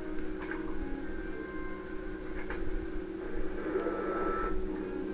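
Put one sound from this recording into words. A computer terminal hums steadily.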